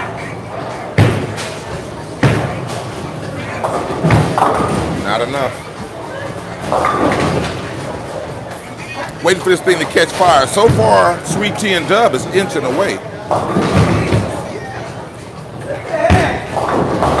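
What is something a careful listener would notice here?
Bowling pins crash and clatter in a large echoing hall.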